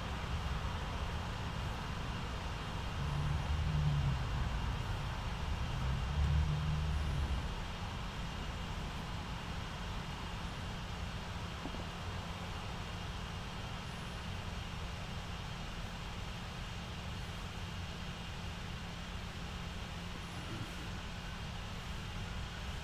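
Wind rumbles and buffets in gusts outdoors.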